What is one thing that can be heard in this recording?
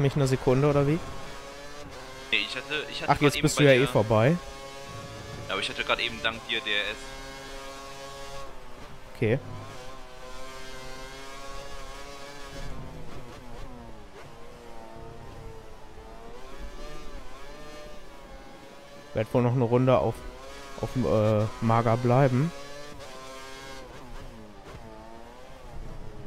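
A racing car engine whines loudly, rising and falling in pitch as it speeds up and brakes.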